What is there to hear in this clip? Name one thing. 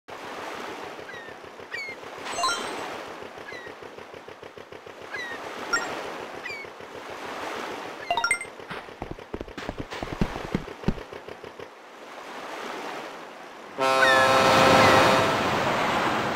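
Gentle sea waves wash in a video game.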